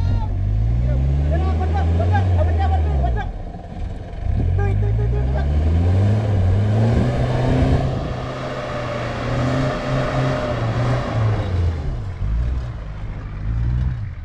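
A vehicle engine revs hard, rising and falling in pitch.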